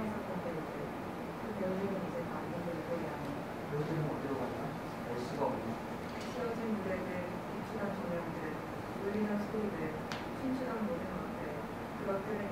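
A young person reads aloud calmly into a microphone, close by.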